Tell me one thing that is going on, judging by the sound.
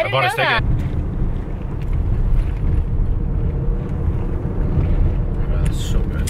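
A young woman sips a drink through a straw.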